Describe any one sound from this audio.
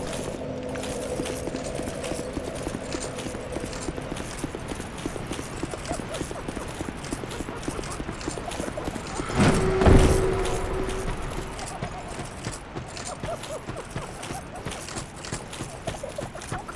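Armoured footsteps run quickly over stone and grass.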